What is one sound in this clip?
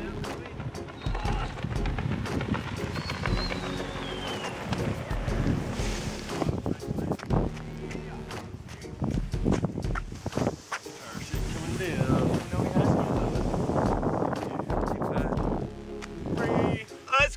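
Wind rushes over a microphone outdoors.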